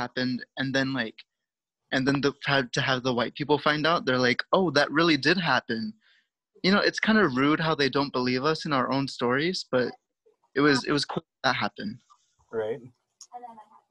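A man speaks calmly and clearly through an online call, reading out words slowly.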